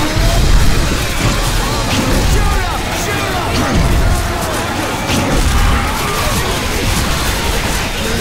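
A large monster roars and growls close by.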